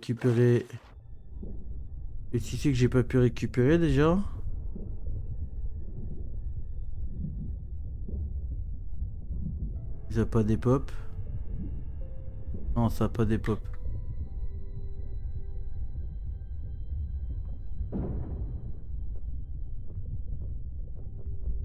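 Deep water rumbles low and steady.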